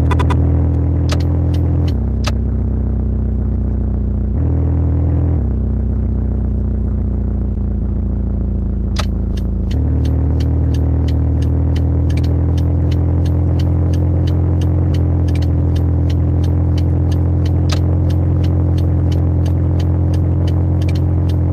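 A car engine hums steadily, shifting in pitch as the car speeds up and slows down.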